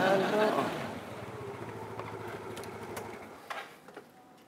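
A motorbike engine idles nearby.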